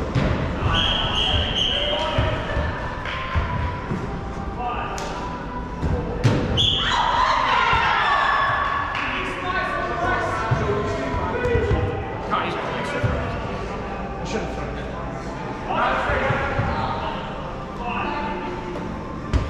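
Shoes squeak on the court.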